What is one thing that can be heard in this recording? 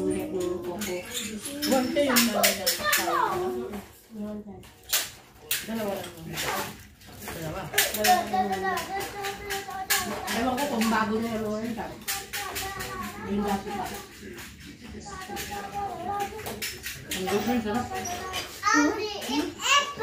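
Dishes and utensils clink on a table.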